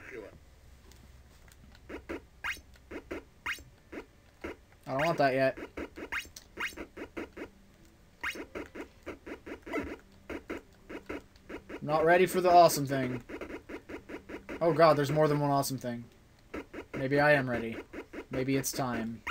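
Short electronic blips beep in quick succession.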